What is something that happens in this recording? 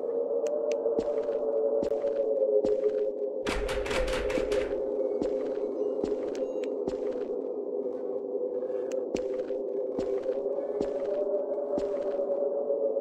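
Footsteps thud slowly and evenly on a wooden floor.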